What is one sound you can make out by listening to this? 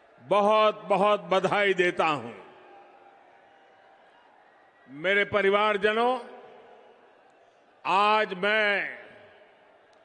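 An elderly man speaks forcefully into a microphone over loudspeakers, in short bursts with pauses.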